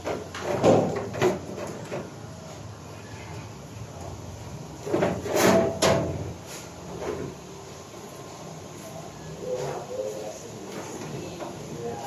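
Loose cables rustle and knock together.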